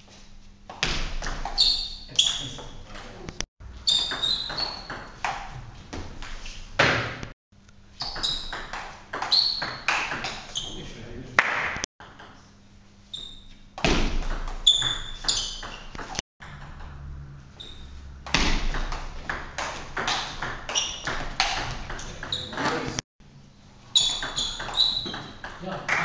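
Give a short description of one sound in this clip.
A table tennis ball clicks rapidly back and forth off paddles and the table in an echoing hall.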